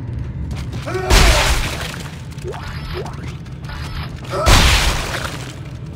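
Heavy metal boots stomp down hard with loud thuds.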